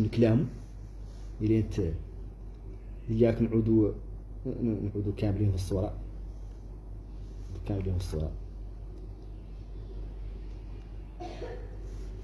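A middle-aged man speaks calmly and slowly, close to the microphone, with long pauses.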